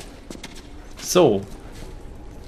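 A man close to a headset microphone lets out a short, falling exclamation.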